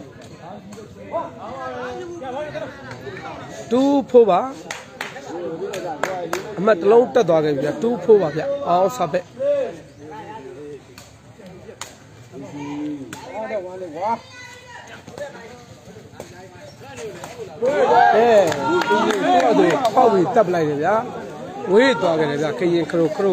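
Young men in a crowd chatter and cheer close by, outdoors.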